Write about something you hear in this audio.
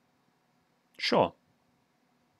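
A young man briefly exclaims close by.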